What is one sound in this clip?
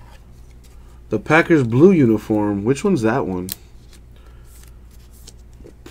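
A plastic card sleeve crinkles softly in hands.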